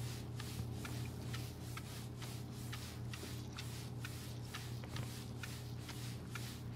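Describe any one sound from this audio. A scrubbing sponge rubs back and forth in quick, steady strokes against a tiled wall.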